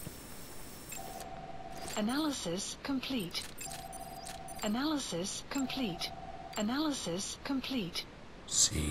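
Electronic binoculars chirp and beep in short rising and falling tones.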